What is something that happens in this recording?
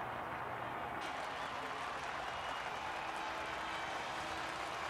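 Applause and cheering rise up.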